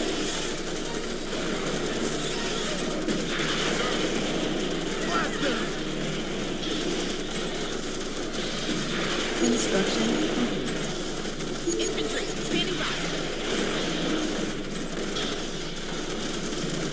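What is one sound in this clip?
Gunfire crackles and explosions thud in a busy battle.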